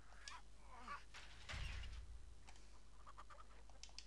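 A heavy wooden door scrapes open.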